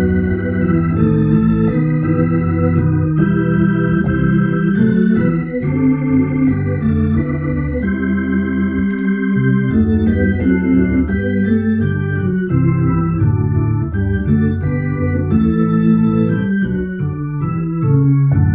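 An electric organ plays chords and a melody throughout.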